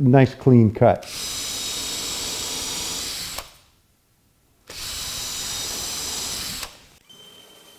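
A cordless drill whirs in steady bursts.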